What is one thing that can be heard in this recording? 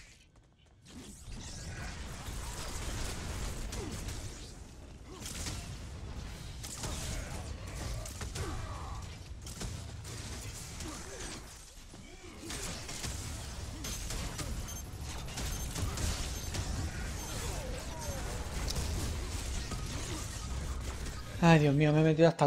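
Magic blasts and impacts crash and boom in a fight.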